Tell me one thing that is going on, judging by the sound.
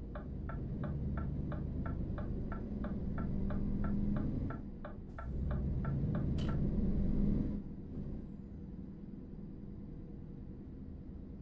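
A truck engine hums steadily, then quietens.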